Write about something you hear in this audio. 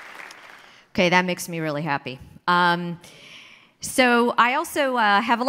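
A woman speaks into a microphone over loudspeakers in a large hall.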